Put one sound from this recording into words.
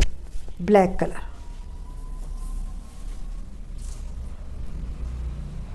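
Fabric rustles as a cloth is unfolded and shaken.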